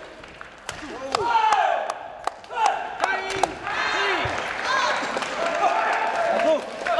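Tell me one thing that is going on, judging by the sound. Young men shout and cheer in a large echoing hall.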